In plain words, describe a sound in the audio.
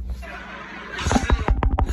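A man blows into his hand near a microphone.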